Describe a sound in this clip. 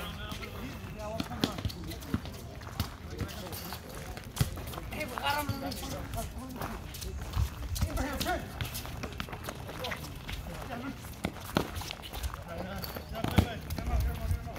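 Sneakers scuff and squeak on the court.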